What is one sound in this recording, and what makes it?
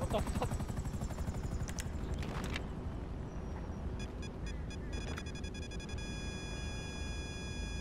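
A helicopter engine rumbles steadily close by.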